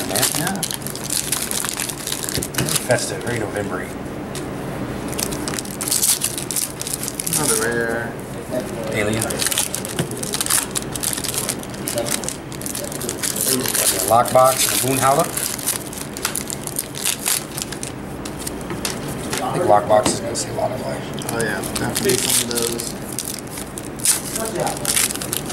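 Foil wrappers crinkle and tear open.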